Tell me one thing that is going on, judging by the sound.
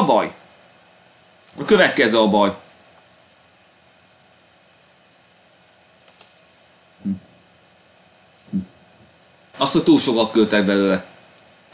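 A young man talks into a close microphone in short bursts.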